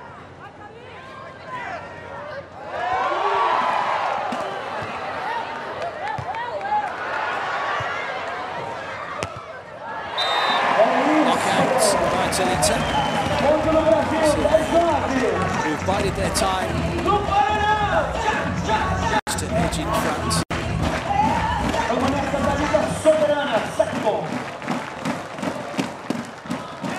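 A large crowd cheers and chants in a big arena.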